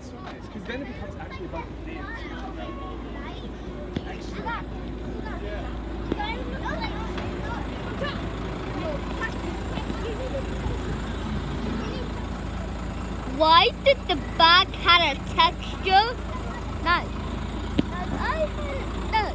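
Children chatter and call out nearby outdoors.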